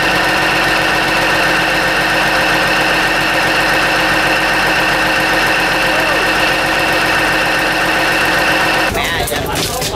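A diesel engine runs with a loud, steady drone close by.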